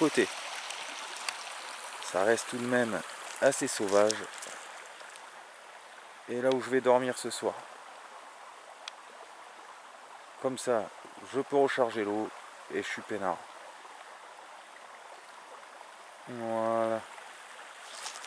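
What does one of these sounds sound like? A shallow stream trickles gently over stones.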